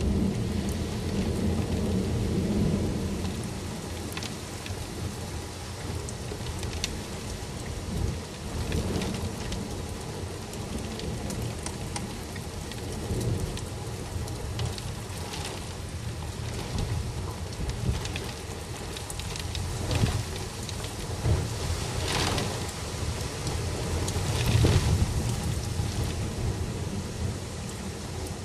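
Raindrops tap against a window pane.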